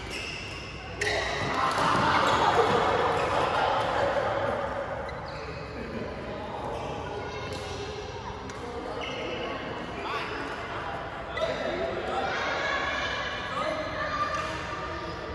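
Young men call out to each other across the hall.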